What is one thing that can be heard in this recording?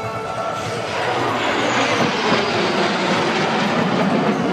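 A formation of jet planes roars past overhead.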